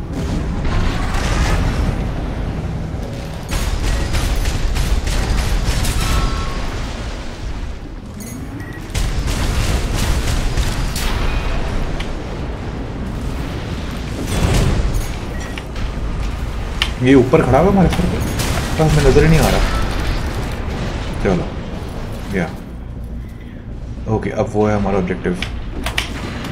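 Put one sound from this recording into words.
Loud explosions and gunfire boom from a game.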